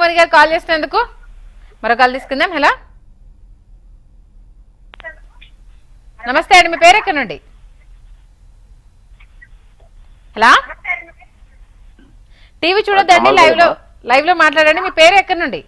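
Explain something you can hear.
A woman reads out the news calmly through a microphone, in bursts with pauses.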